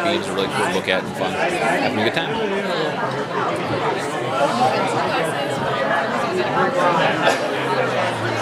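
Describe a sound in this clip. A crowd chatters in a large room.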